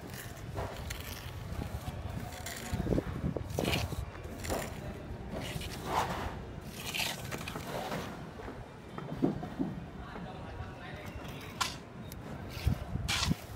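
A trowel scrapes and smooths wet cement.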